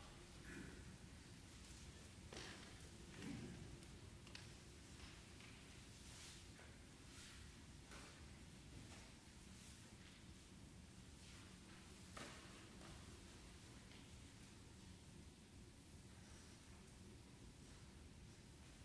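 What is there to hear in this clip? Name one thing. A string quartet plays softly in an echoing hall.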